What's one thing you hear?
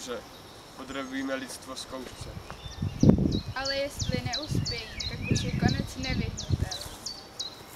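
A teenage boy talks with animation outdoors.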